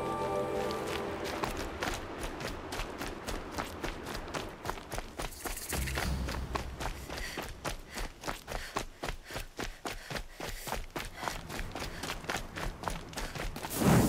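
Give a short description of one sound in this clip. Footsteps run quickly over stony ground.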